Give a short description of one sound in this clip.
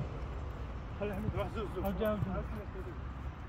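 A young man talks near the microphone.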